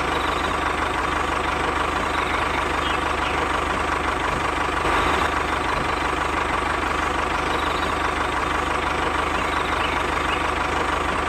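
A small toy motor whirs steadily.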